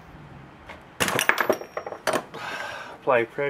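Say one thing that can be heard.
A metal wrench clinks and ratchets against metal parts.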